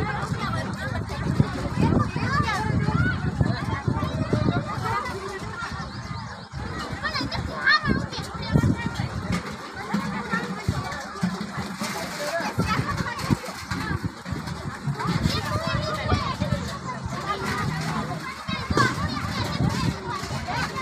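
A crowd of women chatter and call out outdoors.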